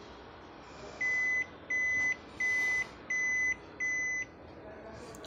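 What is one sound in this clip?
A machine beeps several times in short, even bursts.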